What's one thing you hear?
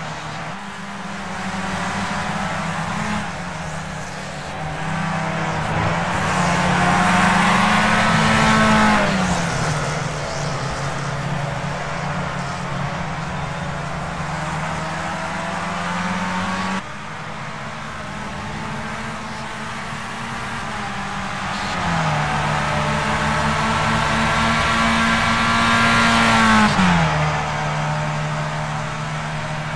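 A racing car engine whines steadily, rising and falling in pitch as the car speeds up and brakes.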